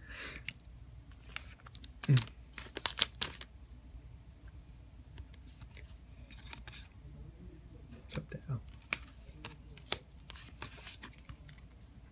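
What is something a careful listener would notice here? Trading cards slide and tap softly against each other in hands.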